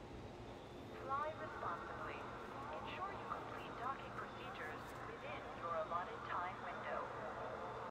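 A man talks into a headset microphone, heard close and clearly.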